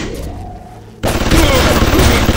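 A loud electric blast crackles and booms.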